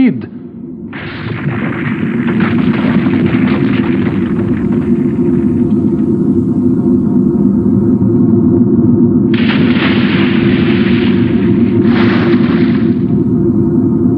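Steam hisses steadily from vents in the ground.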